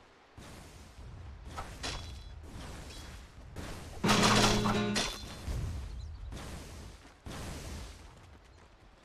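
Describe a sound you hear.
Game characters' weapons clash and hit.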